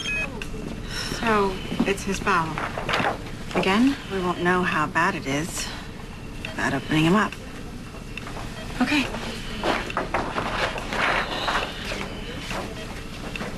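A young woman speaks calmly and quietly nearby.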